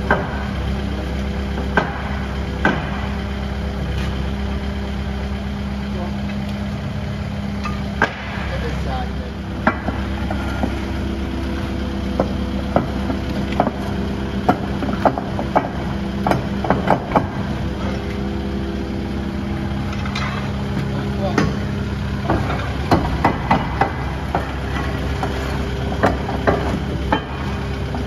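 Metal clanks sharply as a steel bar pries at heavy steel plates.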